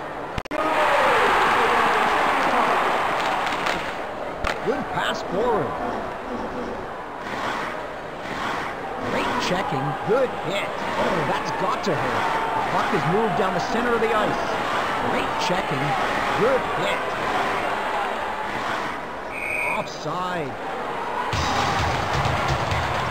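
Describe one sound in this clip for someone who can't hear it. Skates scrape on ice.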